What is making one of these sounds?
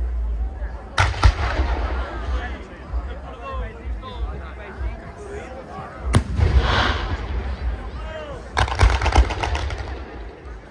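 Ground fireworks fizz and crackle.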